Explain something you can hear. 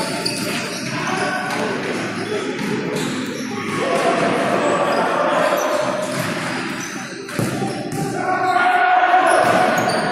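A ball bounces and is kicked with dull thuds.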